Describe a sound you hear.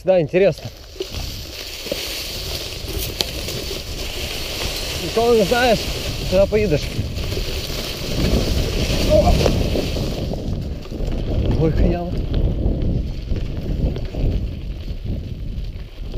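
Bicycle tyres roll and crunch over dirt and dry leaves.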